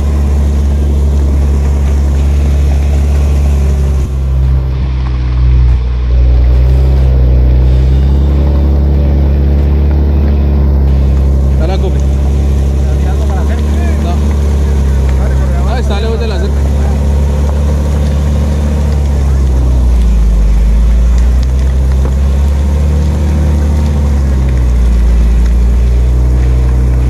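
Tyres roll over a muddy, bumpy track.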